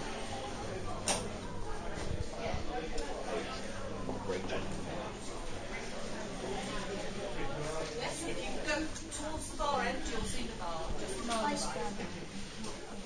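Adult men and women chat in the background indoors.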